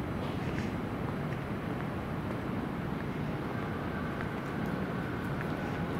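A woman's footsteps tap lightly on a paved street.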